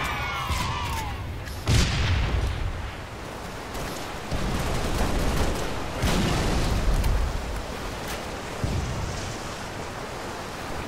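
Water rushes and splashes underfoot while wading through a stream.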